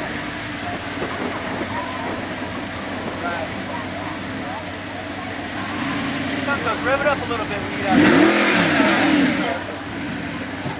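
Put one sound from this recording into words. A sports car engine idles with a low rumble.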